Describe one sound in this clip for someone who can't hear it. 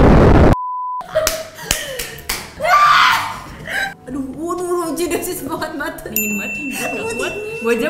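Young women laugh and talk with animation close by.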